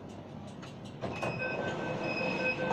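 Train doors slide open with a thud.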